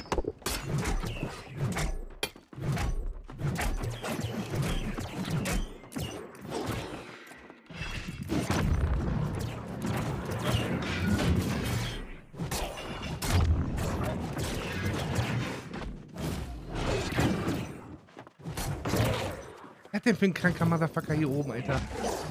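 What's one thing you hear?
Blades strike with sharp metallic hits.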